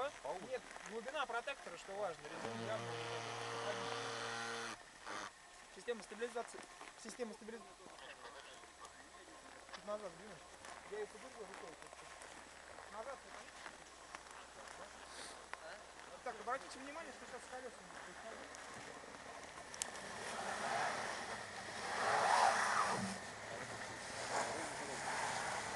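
A car engine runs and revs.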